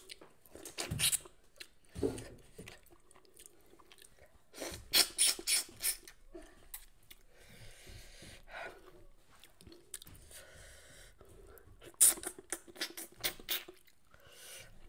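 A woman chews and slurps food loudly close by.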